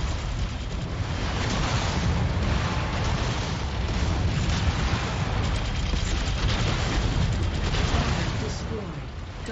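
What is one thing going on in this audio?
Cannons fire in a video game battle.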